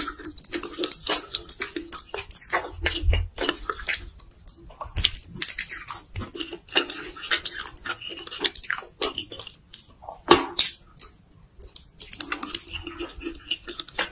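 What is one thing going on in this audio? A woman chews wet food with sticky, smacking sounds close to the microphone.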